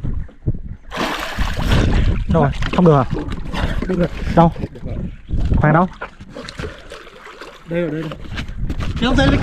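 Water splashes as a swimmer moves beside a boat.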